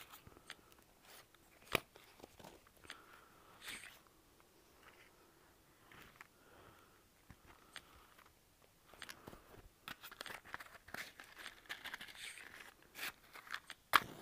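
Cards snap down one at a time onto a table.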